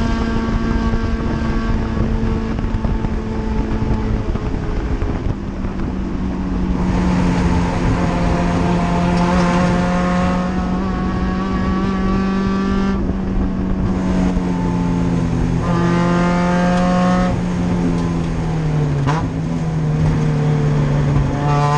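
Tyres and the car body rumble and rattle over the track.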